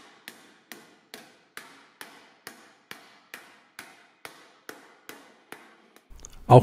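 A mallet taps steadily on sheet metal, in an even rhythm.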